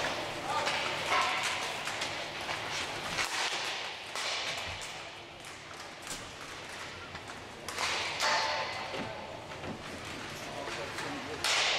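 Hockey sticks clack and knock against each other.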